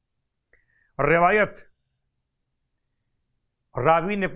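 A man speaks slowly and calmly into a close microphone, with long pauses.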